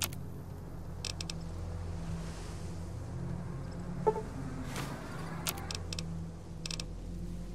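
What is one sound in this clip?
Menu clicks tick sharply.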